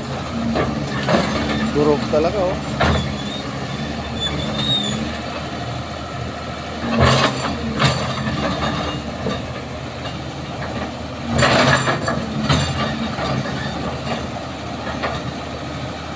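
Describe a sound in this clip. Metal clanks and scrapes as an excavator bucket works.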